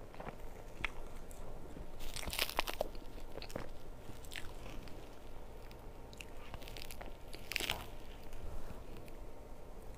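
A metal spoon scrapes and taps against a cake board.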